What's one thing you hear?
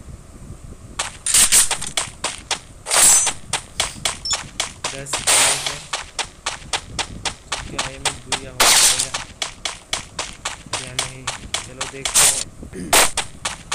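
Footsteps patter quickly and evenly on the ground.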